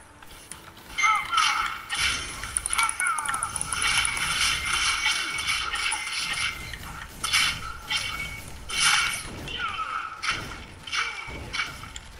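Magic blasts whoosh and crackle.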